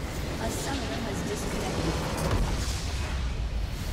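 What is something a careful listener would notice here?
A large structure explodes with a loud blast.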